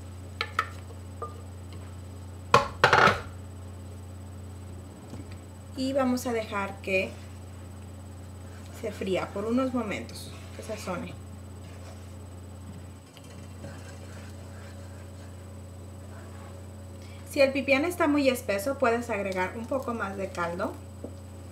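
Liquid pours into a frying pan.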